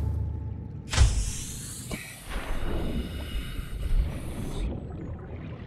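Water bubbles and swirls underwater.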